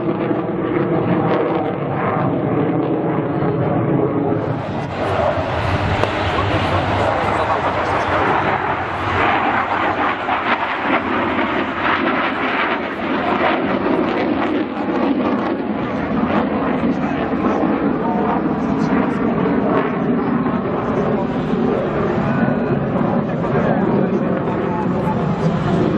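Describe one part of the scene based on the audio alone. A jet engine roars loudly overhead, rising and falling as the aircraft passes.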